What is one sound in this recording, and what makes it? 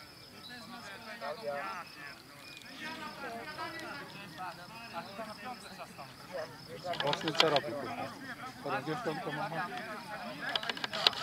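Several men shout and call to each other outdoors.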